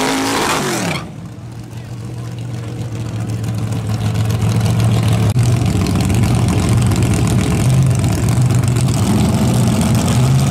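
A drag car engine idles with a rough, loping beat.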